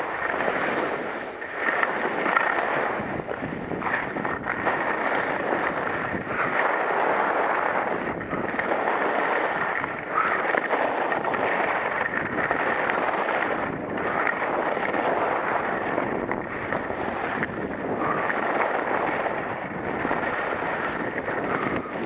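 Skis carve and scrape through snow in rhythmic turns.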